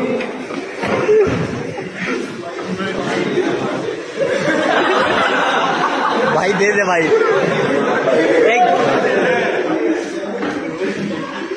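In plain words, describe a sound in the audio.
Young men laugh and chatter excitedly nearby.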